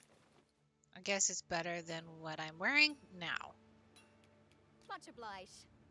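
A woman speaks casually into a close microphone.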